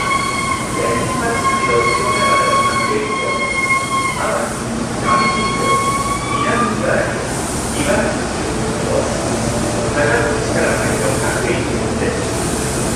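A crowd of passengers murmurs and chatters nearby.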